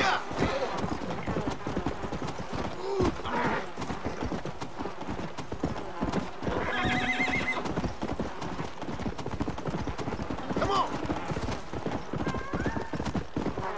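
A horse gallops with quick, steady hoofbeats on dirt.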